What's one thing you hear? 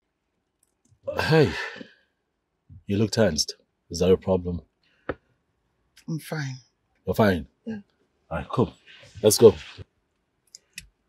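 An adult man speaks calmly at close range.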